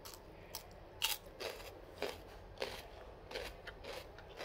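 A fork clinks against a bowl.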